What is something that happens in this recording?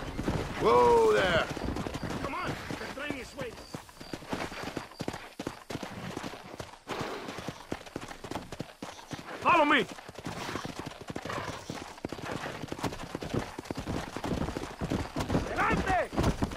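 Horses' hooves thud rapidly as they gallop over dry ground.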